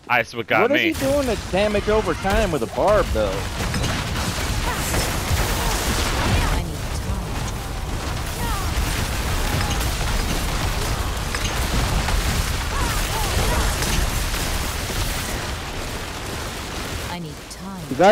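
An icy storm spell roars and crackles in dense bursts.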